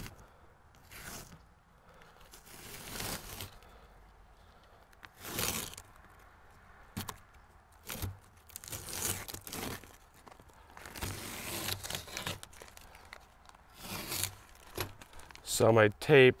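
A scraper rasps against wood in short strokes.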